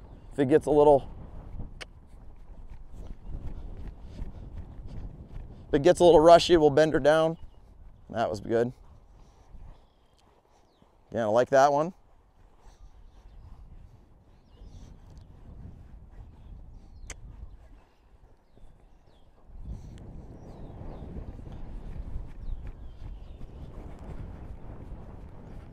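A horse's hooves thud softly on sand.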